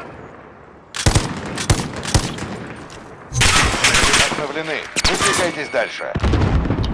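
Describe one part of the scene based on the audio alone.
Gunshots crack in loud bursts.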